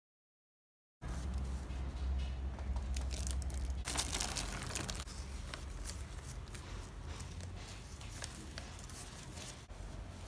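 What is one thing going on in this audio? Paper bags rustle and crinkle as they are handled.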